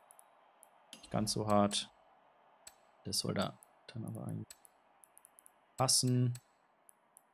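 Short electronic menu tones chime.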